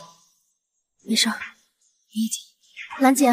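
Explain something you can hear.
A young woman answers softly up close.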